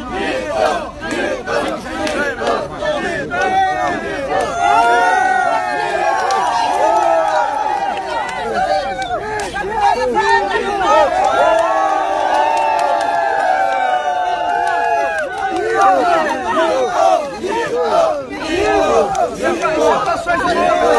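A crowd of men and women shouts and cheers excitedly close by.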